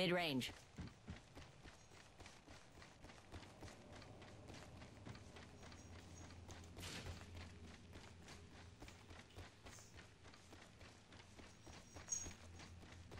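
Quick footsteps run steadily across a hard floor.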